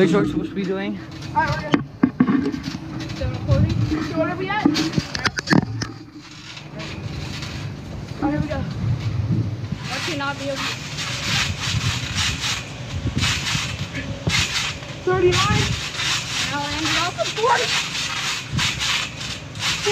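Children talk and shout outdoors.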